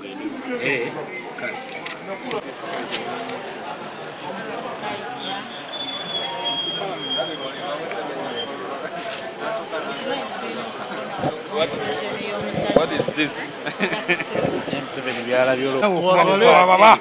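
A crowd of men chatters outdoors nearby.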